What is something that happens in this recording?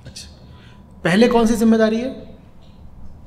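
A man speaks into a microphone close by, briefly and with emphasis.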